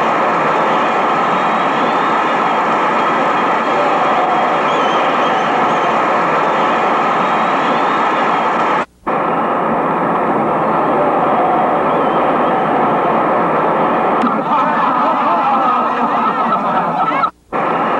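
A large crowd roars and cheers steadily in an open stadium.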